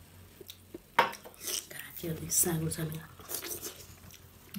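A man sucks food from his fingers up close.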